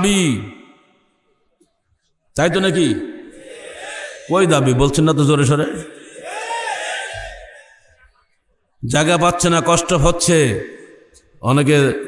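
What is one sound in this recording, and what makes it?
An elderly man preaches with feeling into a microphone, in long drawn-out phrases and pauses.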